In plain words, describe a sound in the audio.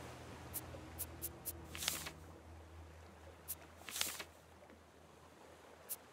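Short interface clicks sound now and then.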